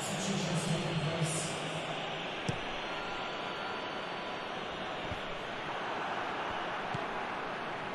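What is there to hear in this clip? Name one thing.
A stadium crowd roars and chants steadily.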